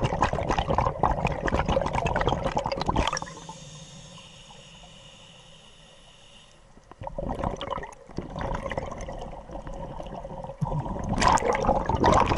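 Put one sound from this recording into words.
Air bubbles gurgle and burble loudly underwater as a diver breathes out.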